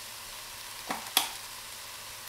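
A spice jar clicks open.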